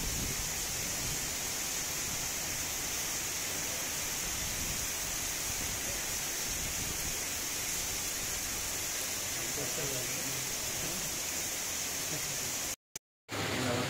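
Heavy rain pours down in a steady, dense hiss.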